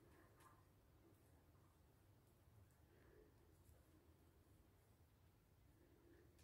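Knitting needles click softly against each other.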